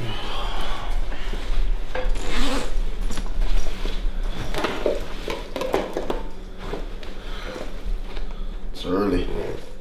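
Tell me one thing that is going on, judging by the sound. A fabric bag rustles.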